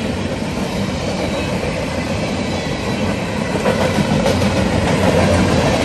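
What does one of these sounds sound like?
A train rushes past close by with a loud steady roar and rattle of wheels on rails.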